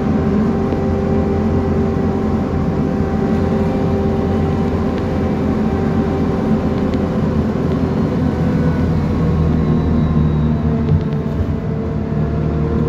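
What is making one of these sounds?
A vehicle rumbles steadily along at speed, with a low hum and whine.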